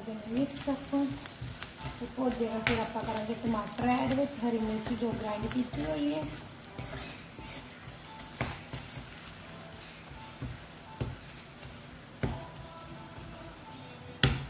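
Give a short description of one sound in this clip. A spatula scrapes and stirs food in a metal wok.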